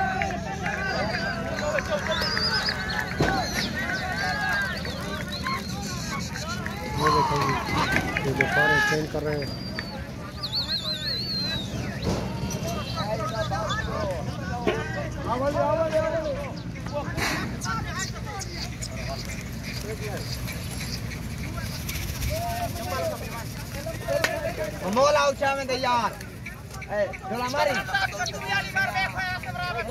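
Men shout and call out outdoors throughout.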